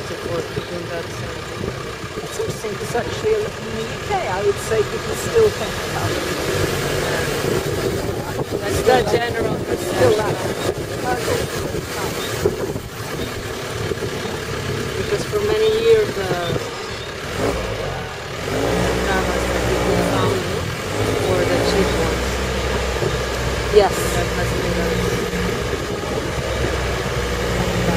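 Wind rushes past an open vehicle.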